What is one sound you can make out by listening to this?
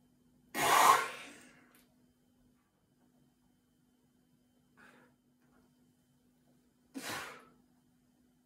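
A young man exhales forcefully close by.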